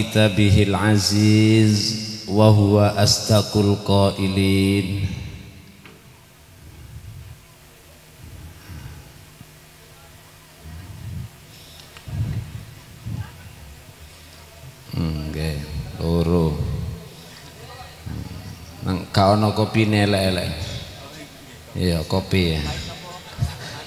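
A middle-aged man speaks with animation through a microphone and loudspeakers.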